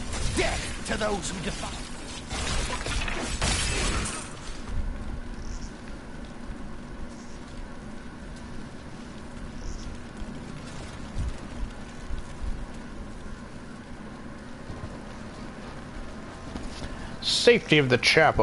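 Fire crackles and roars.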